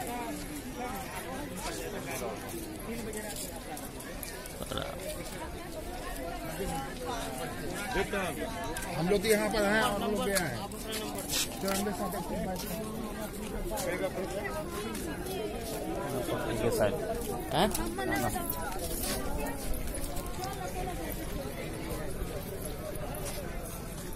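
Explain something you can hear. A crowd of people murmurs and chatters outdoors.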